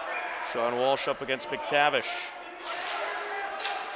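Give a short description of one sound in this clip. Hockey sticks clack against the ice and each other.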